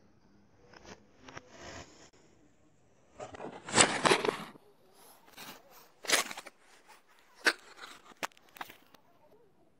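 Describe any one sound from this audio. Wooden blocks clatter and knock against each other in a cardboard box.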